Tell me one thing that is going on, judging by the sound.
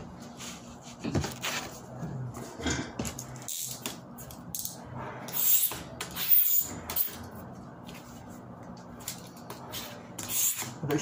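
A stiff plastic sheet rustles and flexes as it is handled.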